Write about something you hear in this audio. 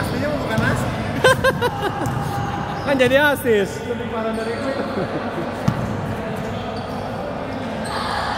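A basketball bounces on a hard court in a large echoing hall.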